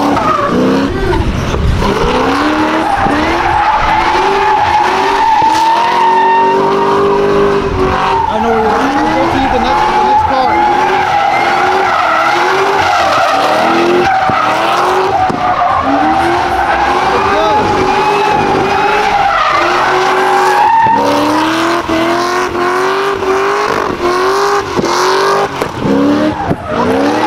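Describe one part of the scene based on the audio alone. Tyres screech steadily on asphalt.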